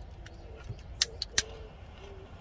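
A small metal fitting clicks on a cord.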